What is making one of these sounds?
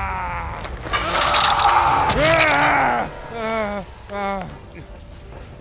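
A man screams loudly in pain.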